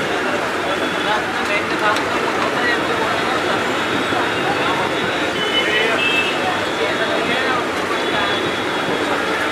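A metal ladle scrapes and clinks against the pan.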